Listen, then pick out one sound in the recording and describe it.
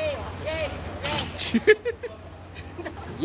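A middle-aged woman laughs.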